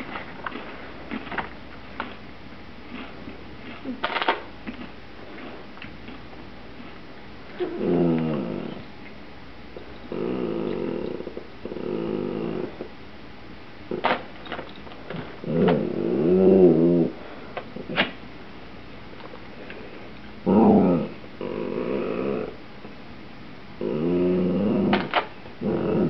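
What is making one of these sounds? A plastic snack bag crinkles and rustles close by.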